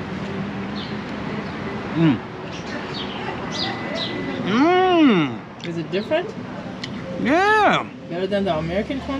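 A man speaks casually close by.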